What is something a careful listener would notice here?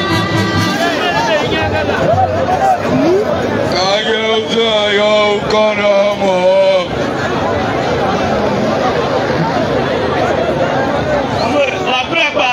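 A crowd chatters and cheers in the background.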